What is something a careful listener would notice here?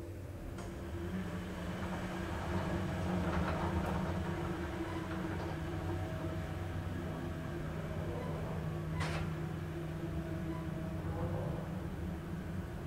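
A lift hums steadily as it travels down.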